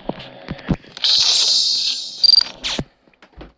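A card slides through a reader with a brief electronic whir.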